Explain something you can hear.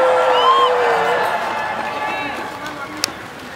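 A young woman speaks into a microphone through loudspeakers.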